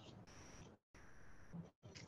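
A woman drinks from a water bottle.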